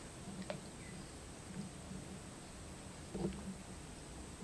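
Wooden poles splash and push through shallow water.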